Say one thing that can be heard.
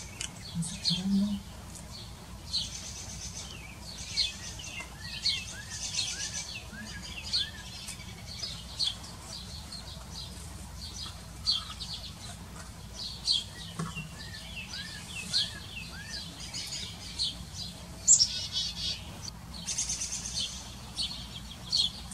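A bird ruffles and preens its feathers with a soft rustle.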